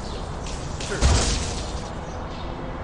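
An electric weapon crackles and zaps in sharp bursts.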